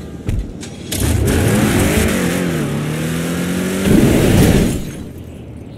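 A car engine revs up and roars.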